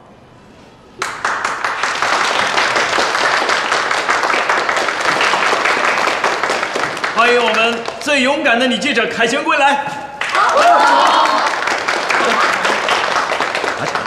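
A group of people clap and cheer loudly.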